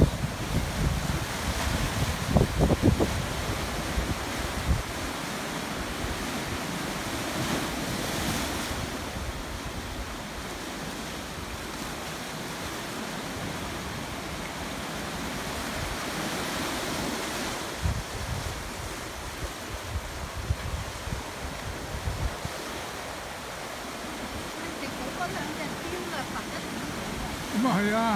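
Waves crash and swash over rocks outdoors.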